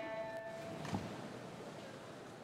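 Swimmers splash into the water in a large echoing hall.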